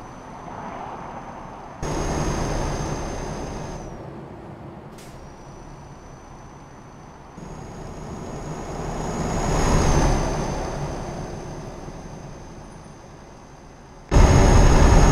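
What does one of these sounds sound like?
A truck engine rumbles steadily.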